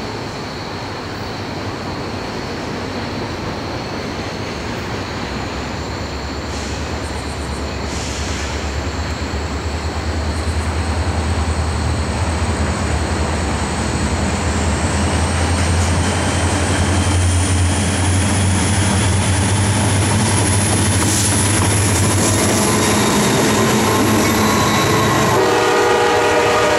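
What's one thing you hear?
A diesel locomotive approaches with a deep, steady rumble that grows louder.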